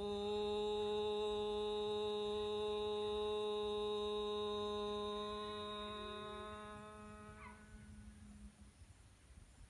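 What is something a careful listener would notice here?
A singing bowl rings with a clear tone and slowly fades.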